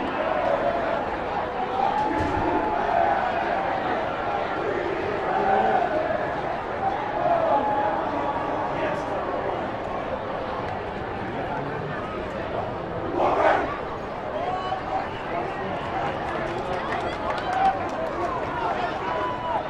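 A group of young men chant and shout together up close.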